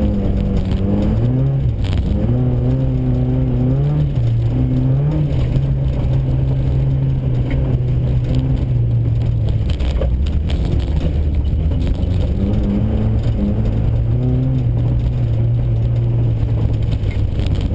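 A car engine revs up and down loudly as the car slides around turns.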